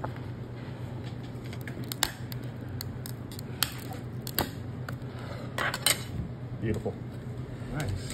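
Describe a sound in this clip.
Plastic clicks and cracks as fingers pry at a hard plastic case.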